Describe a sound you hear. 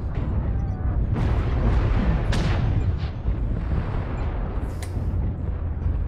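Cannon shots boom and crack nearby.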